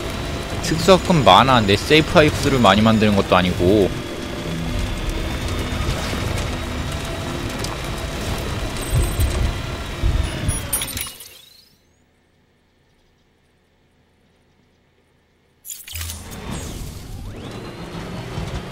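A vehicle engine hums as it drives over rough, rocky ground.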